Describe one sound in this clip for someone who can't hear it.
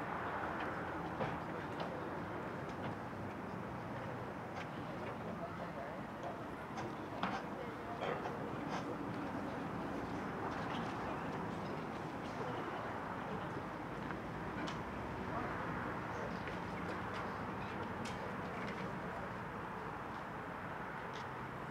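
A wind band plays outdoors.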